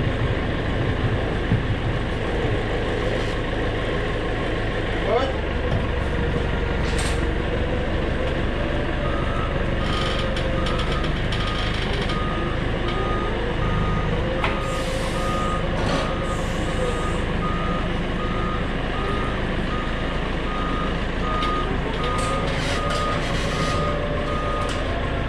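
A diesel engine rumbles close by and revs up and down.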